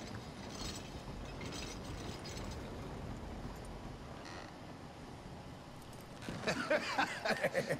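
Wagon wheels rumble and creak over wooden boards.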